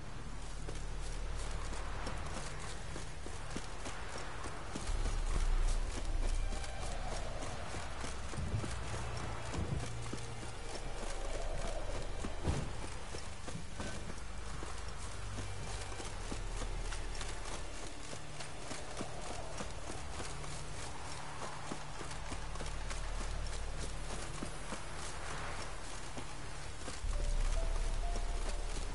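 Footsteps thud quickly on a dirt path.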